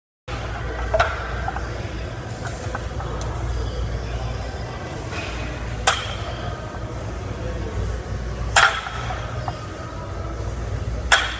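Weight plates clank as a barbell is set down on the floor.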